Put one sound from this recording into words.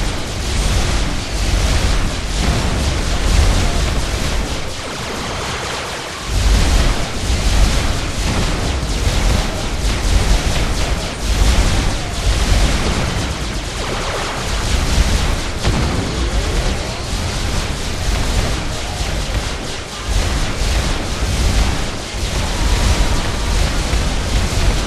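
Electronic dance music with a heavy beat plays loudly.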